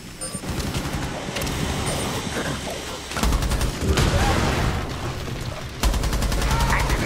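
A rifle fires rapid bursts.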